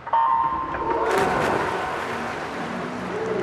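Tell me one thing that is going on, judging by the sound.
Swimmers dive into the water with loud splashes.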